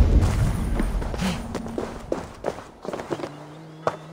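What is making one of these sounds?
Hands and feet knock on a wooden ladder while climbing.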